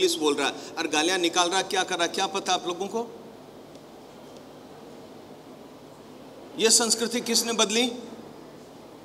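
An elderly man speaks calmly and earnestly into a close microphone, pausing between phrases.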